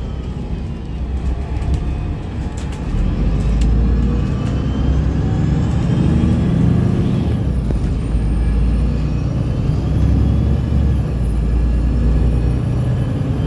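Tyres roll and rumble on the road.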